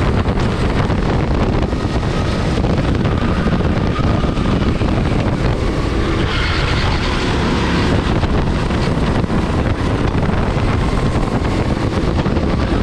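A go-kart engine drones loudly up close.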